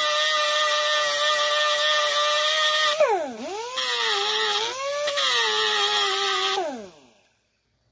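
An angle grinder whines loudly at high speed, its pitch dropping and rising before it winds down.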